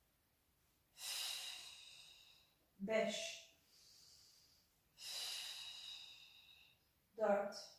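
A woman exhales sharply and loudly through her mouth.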